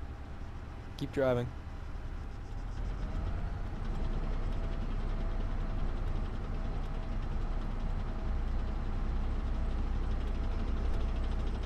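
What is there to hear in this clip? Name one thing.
Tank tracks clatter on a paved road.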